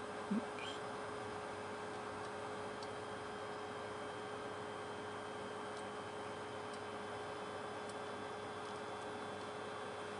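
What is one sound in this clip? Fingertips tap lightly on small electronic parts.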